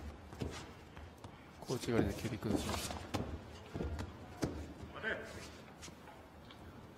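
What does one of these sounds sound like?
Bare feet thud and shuffle on a mat.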